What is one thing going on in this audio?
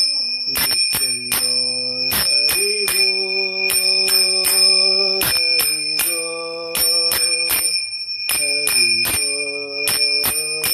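A small hand bell rings in quick strokes.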